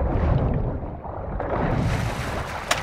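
Water splashes and sloshes as someone climbs out of it.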